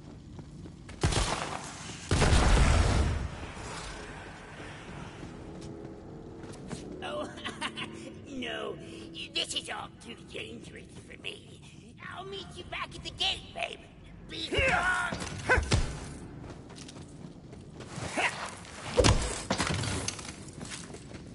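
A gun fires with loud blasts and explosions.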